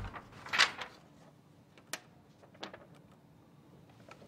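Paper rustles as a sheet is handled.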